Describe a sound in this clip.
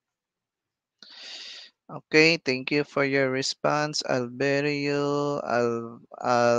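A young man speaks with animation into a headset microphone, heard as if over an online call.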